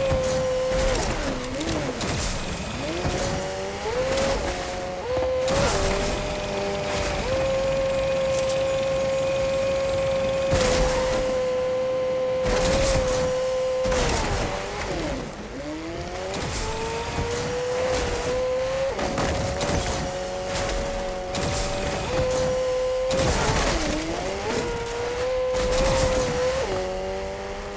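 A car engine hums and rises and falls in pitch as it speeds up and slows down.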